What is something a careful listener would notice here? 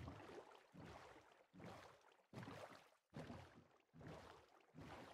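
Oars splash in water in a steady, even rhythm.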